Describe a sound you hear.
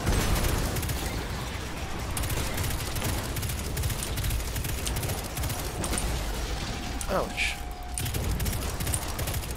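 A shotgun fires in rapid blasts.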